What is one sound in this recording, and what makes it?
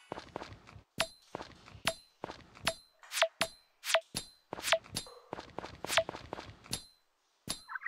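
A game hammer strikes rocks with sharp, repeated cracks.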